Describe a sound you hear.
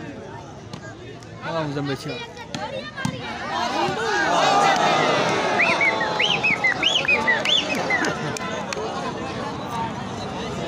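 A ball is struck with a thump.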